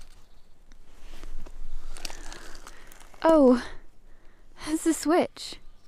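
Broken debris crunches and rattles as a hand picks through it.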